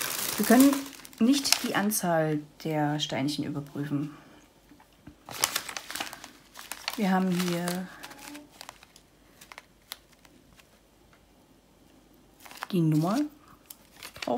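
Plastic bags of beads rustle and crinkle in someone's hands.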